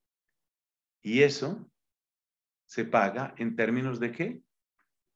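A middle-aged man speaks calmly through an online call.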